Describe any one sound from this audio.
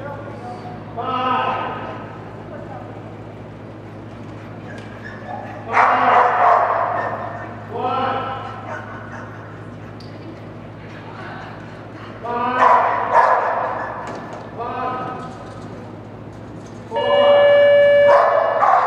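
A dog barks loudly again and again in a large echoing hall.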